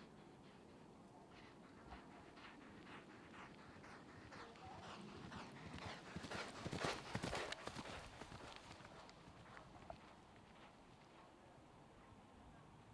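A horse's hooves thud on grass as it canters closer, passes and moves away.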